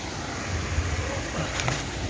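A small waterfall splashes into a stream.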